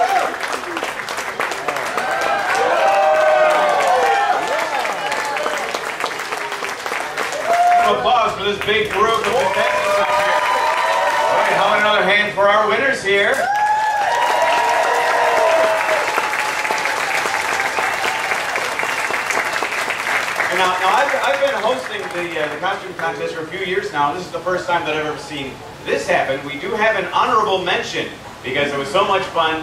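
An audience cheers and shouts.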